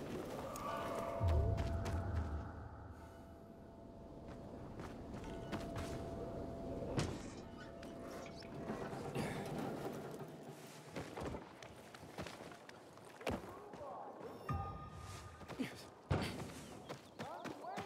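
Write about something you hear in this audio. Footsteps thud quickly while running over rooftops and grass.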